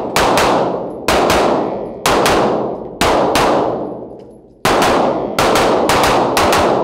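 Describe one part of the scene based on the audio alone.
A pistol fires rapid shots in quick pairs, echoing in an enclosed hall.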